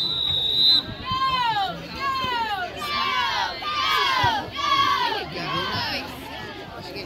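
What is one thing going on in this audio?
A crowd of spectators cheers and shouts loudly.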